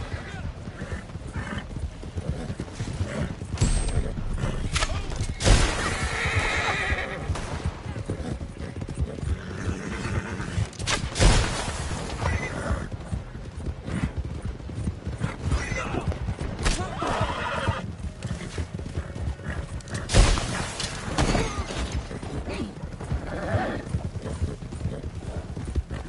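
Horse hooves pound steadily on a dirt trail.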